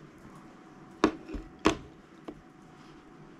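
A paintbrush taps and clinks against a plastic palette.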